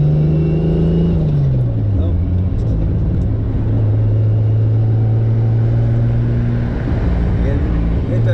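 Wind rushes past an open-top car while driving.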